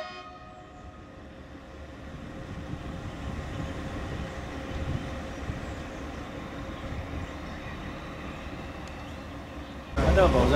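A diesel locomotive engine rumbles steadily as it rolls slowly away along the track.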